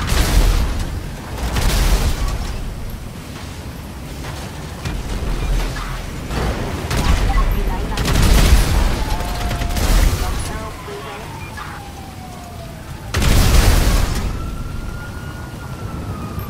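Fires crackle and roar steadily.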